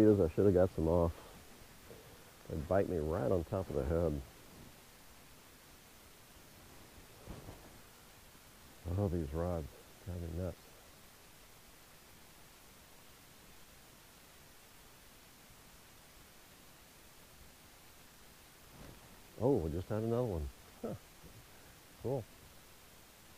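A middle-aged man talks calmly nearby, in short bursts.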